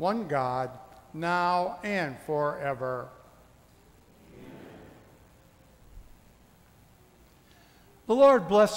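A man chants in a slow sung voice in a reverberant hall.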